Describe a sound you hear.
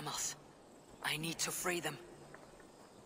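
A man speaks in a low, firm voice.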